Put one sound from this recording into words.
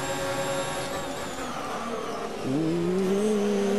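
A racing car engine drops sharply in pitch as it slows down.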